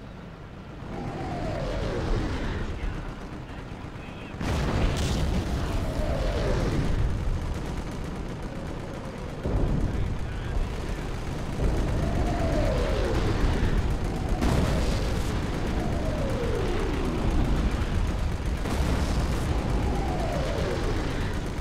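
Artillery shells whistle down, falling in pitch, again and again.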